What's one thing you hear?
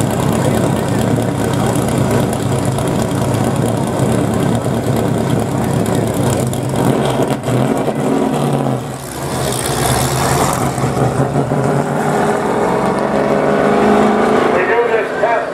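A race car engine roars loudly as the car speeds around the track.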